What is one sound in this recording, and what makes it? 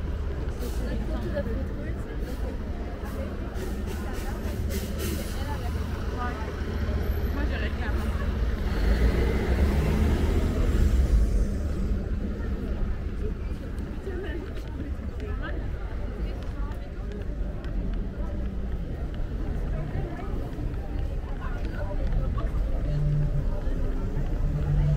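Many people chatter in a busy crowd outdoors.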